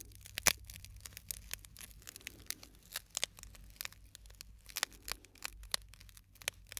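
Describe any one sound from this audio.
Fingers crinkle and tap a small plastic wrapper close to a microphone.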